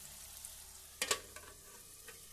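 A metal lid clanks onto a pan.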